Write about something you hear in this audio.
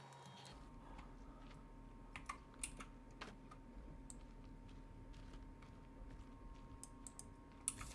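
A sheet of paper rustles as it is unfolded.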